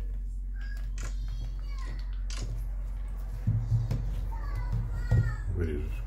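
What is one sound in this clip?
Phones knock lightly as they are picked up and set down on a table.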